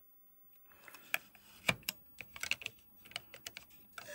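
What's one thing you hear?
Fingers rub and scrape against a circuit board's metal contacts.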